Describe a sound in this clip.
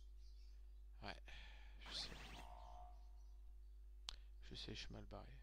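Short electronic game sound effects chime and whoosh.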